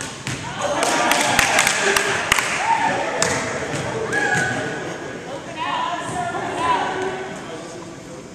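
Sneakers squeak on the wooden floor.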